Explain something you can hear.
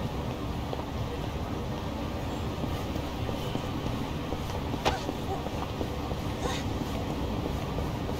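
Footsteps tap on pavement as several people walk.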